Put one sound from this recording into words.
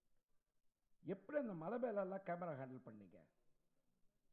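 An older man speaks calmly into a microphone, heard through a loudspeaker.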